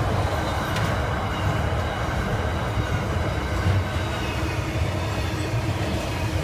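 A container freight train rumbles past close by.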